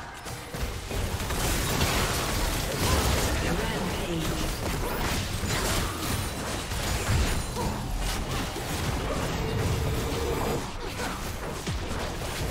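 Game spell effects crackle and boom during a fight.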